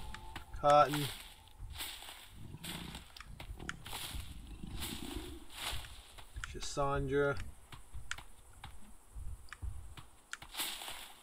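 Leaves rustle and snap as plants are pulled apart by hand.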